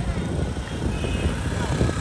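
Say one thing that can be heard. A motor scooter drives past.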